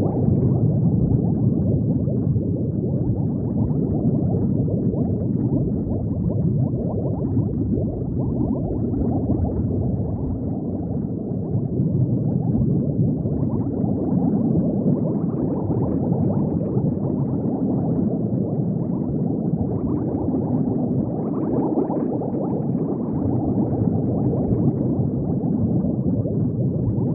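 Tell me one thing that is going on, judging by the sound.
Bubbles gurgle and burble steadily underwater.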